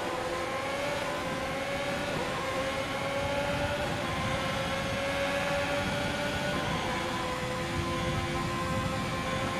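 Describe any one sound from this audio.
A racing car engine roars at high revs, climbing in pitch and dropping briefly with each gear change.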